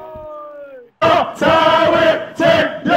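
A young man shouts excitedly into a microphone.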